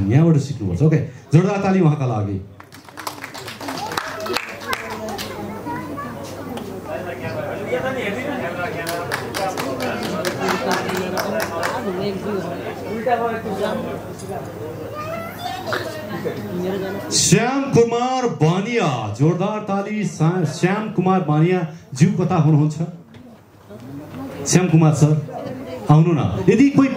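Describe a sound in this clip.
A man speaks with animation through a microphone and loudspeakers in a large hall.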